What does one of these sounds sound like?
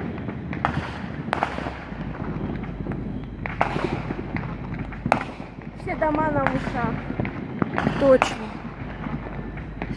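Fireworks bang and crackle in the distance, outdoors.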